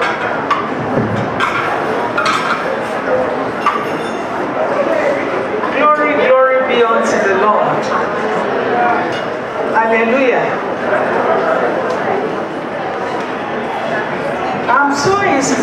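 An elderly woman speaks into a microphone through loudspeakers in a large echoing hall.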